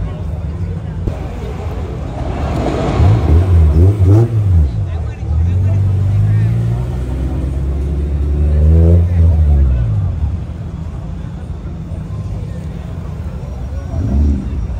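A crowd murmurs and chatters nearby outdoors.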